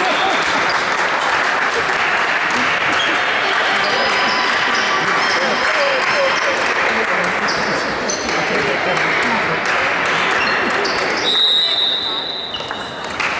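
A crowd of spectators murmurs and chatters in a large echoing hall.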